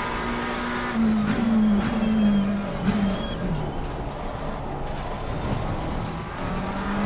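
A racing car engine drops in pitch as the car brakes hard into a slow corner.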